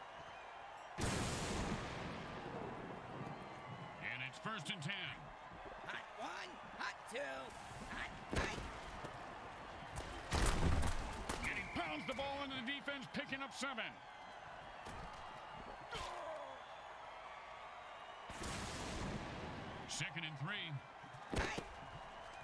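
Armoured players crash together in heavy tackles.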